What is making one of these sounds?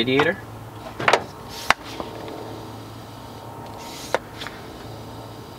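A metal tool clicks and clinks against an engine.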